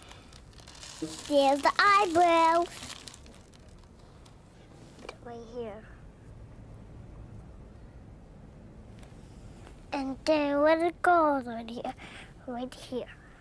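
A young girl talks with animation close by.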